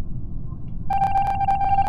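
A game tone rings out steadily near the end.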